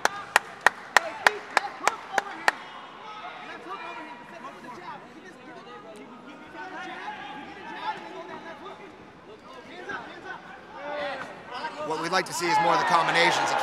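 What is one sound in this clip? A crowd of men and women shouts and cheers, growing louder.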